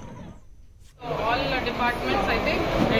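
A woman speaks calmly into several microphones nearby.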